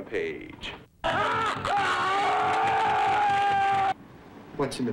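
A man screams in agony.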